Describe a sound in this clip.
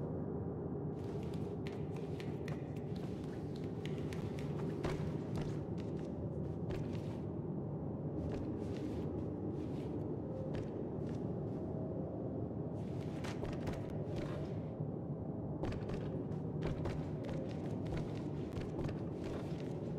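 Small footsteps patter softly across a hard floor.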